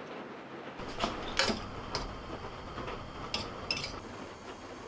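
A metal spoon clinks against a pot while stirring.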